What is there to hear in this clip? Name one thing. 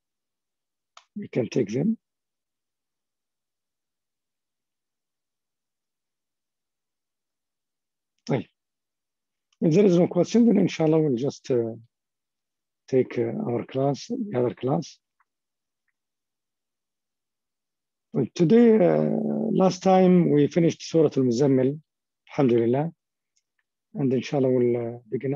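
A man speaks calmly over an online call, pausing often.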